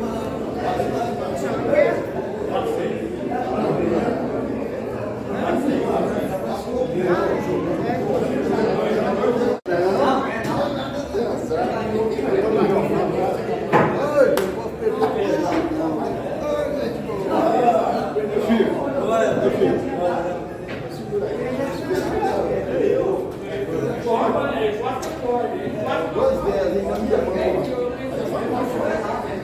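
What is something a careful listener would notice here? Several elderly men talk and chat over one another nearby.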